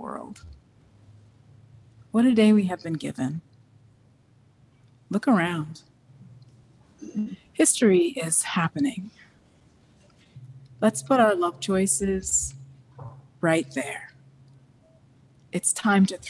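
A woman speaks calmly and slowly into a microphone, with pauses between phrases.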